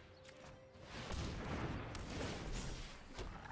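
A soft magical whoosh plays as a game card takes effect.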